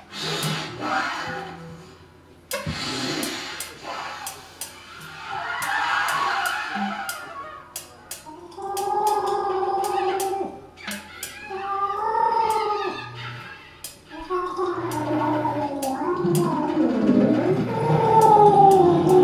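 A drummer taps cymbals and drums softly.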